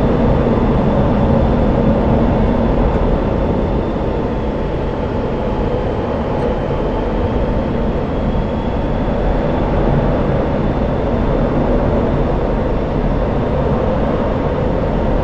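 A jet engine roars steadily inside a cockpit.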